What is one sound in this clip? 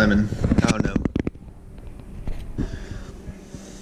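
A fork scrapes on a plate.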